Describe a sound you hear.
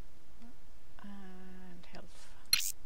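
A short electronic chime sounds from a game menu.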